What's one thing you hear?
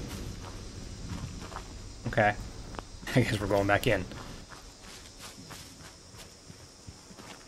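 Footsteps crunch over dry ground and leaves.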